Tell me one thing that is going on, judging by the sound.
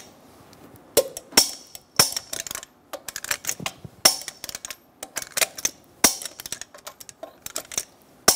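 A torque wrench clicks as a bolt is tightened.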